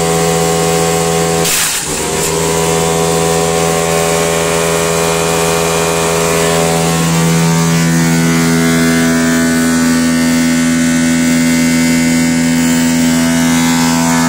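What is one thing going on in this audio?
A wood chipper's engine drones steadily nearby.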